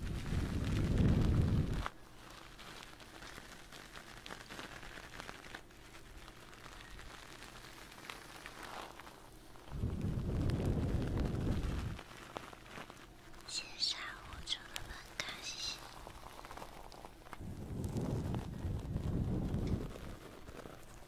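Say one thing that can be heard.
A young woman blows softly into a microphone up close.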